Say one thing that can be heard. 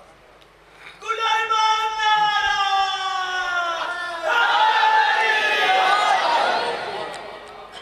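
A man chants loudly in long, held notes through a microphone.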